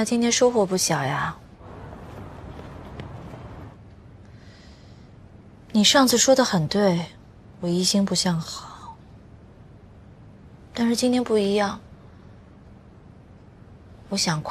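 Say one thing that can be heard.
A young woman speaks calmly into a phone, close by.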